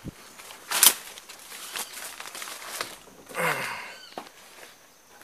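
Leaves and plants rustle close by as someone brushes past them.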